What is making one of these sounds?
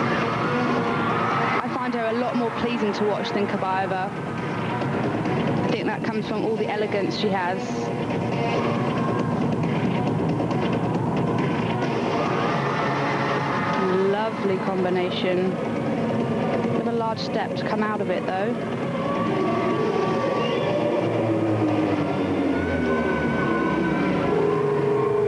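Music plays over loudspeakers in a large echoing hall.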